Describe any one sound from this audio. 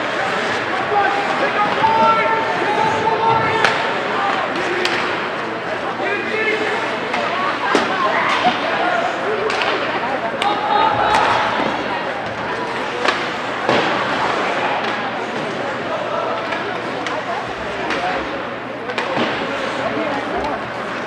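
A crowd of spectators calls out and cheers in an echoing rink.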